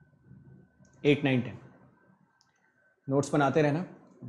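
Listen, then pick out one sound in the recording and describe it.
A young man speaks into a close microphone, calmly explaining.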